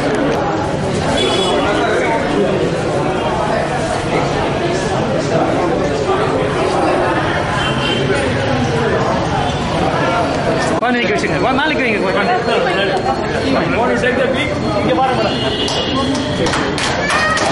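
A crowd of men and women chatters loudly nearby in a busy room.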